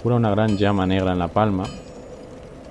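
A young man speaks into a close microphone in a drawn-out, sing-song voice.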